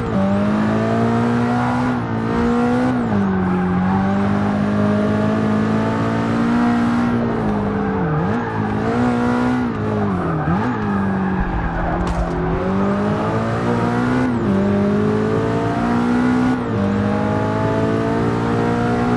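A race car engine roars loudly, its pitch rising through the gears and dropping as it shifts down.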